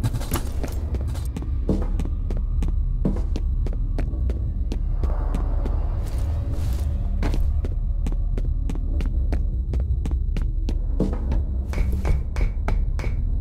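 Quick footsteps thud and clank on a hard floor.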